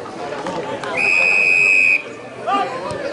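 A whistle blows with a long shrill note.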